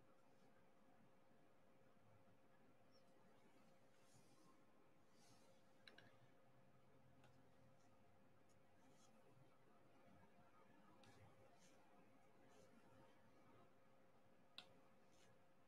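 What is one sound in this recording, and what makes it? A plastic pen taps and clicks softly as it presses small beads into place.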